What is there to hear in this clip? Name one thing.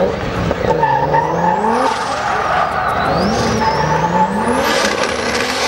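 Tyres squeal on asphalt.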